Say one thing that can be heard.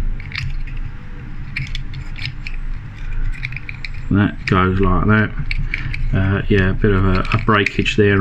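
Small plastic toy parts click and snap as hands fit them together.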